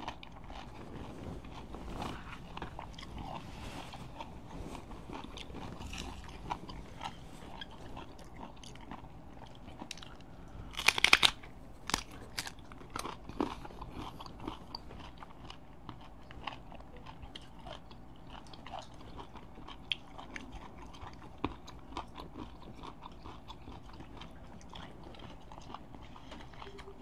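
A young man chews and smacks his lips close by.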